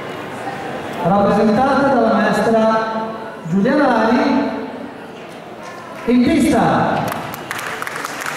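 A man announces over a loudspeaker in a large echoing hall.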